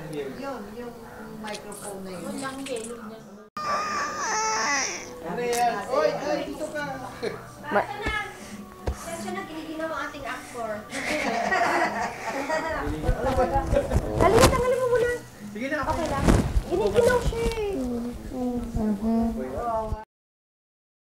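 A young boy talks and giggles close to a microphone.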